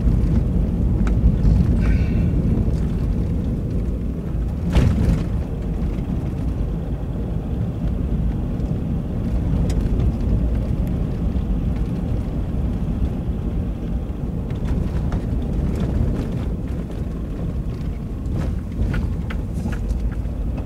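Tyres crunch and rumble on a dirt road, with small stones knocking now and then.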